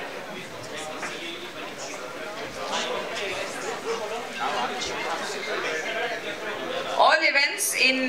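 A crowd of people murmurs and chatters in a large hall.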